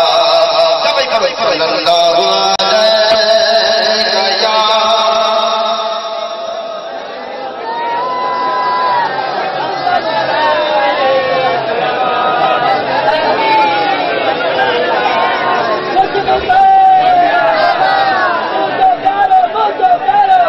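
An elderly man chants in a drawn-out, melodic voice.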